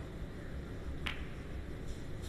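Snooker balls click together softly.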